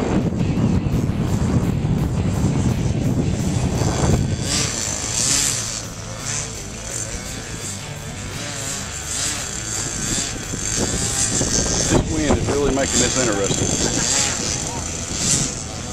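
A small model airplane engine buzzes and whines as its pitch rises and falls.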